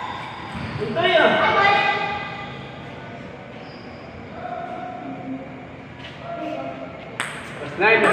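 A ping-pong ball clicks against paddles and bounces on a table.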